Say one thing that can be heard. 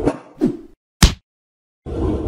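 A hammer strikes with a loud smack.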